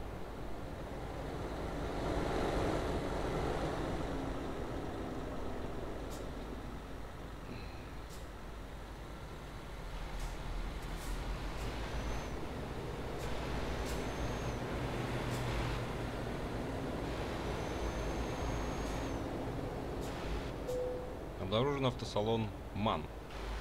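A truck engine rumbles steadily as the truck drives.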